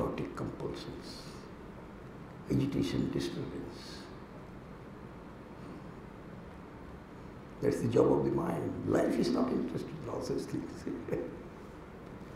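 An elderly man speaks calmly into a microphone, in short bursts with pauses.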